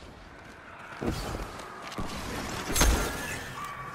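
A gun fires loud booming shots that echo.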